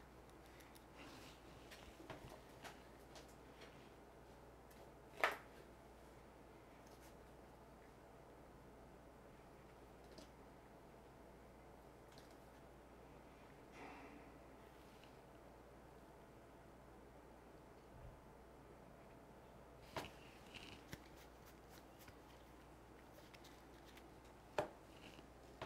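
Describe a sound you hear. Cards tap and slide on a table.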